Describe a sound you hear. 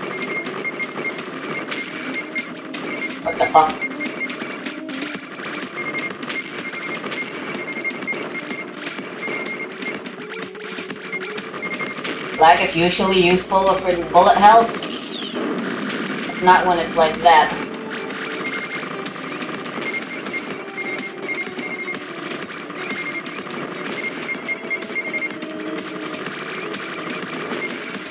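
Rapid game shots patter in a quick, even rhythm.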